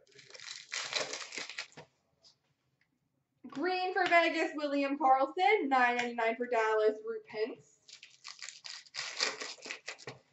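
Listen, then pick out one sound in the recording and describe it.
A plastic card pack wrapper crinkles and tears open.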